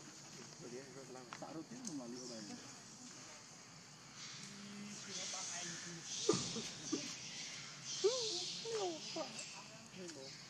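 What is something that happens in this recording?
A baby monkey squeaks and whimpers.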